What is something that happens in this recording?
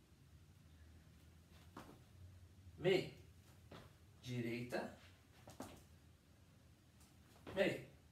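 Shoes tap and shuffle on a tiled floor.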